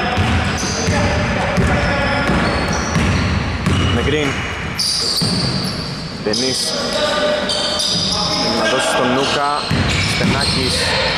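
Sneakers squeak sharply on a wooden court in an echoing hall.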